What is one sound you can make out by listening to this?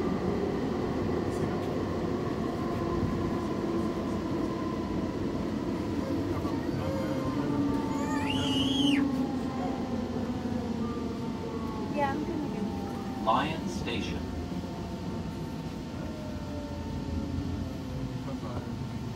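A subway train rumbles and rattles through a tunnel.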